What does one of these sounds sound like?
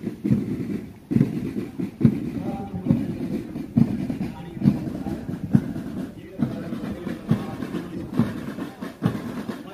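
A marching band's drums beat a steady rhythm outdoors.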